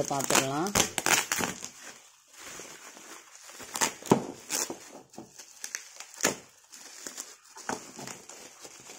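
Plastic wrap crinkles and rustles under a hand.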